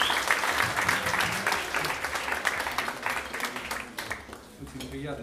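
An audience applauds in a room.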